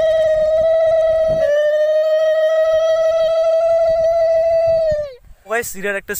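A young man holds a long, loud, steady note with his voice.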